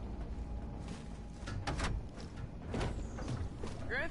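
A heavy metal door unlocks and slides open.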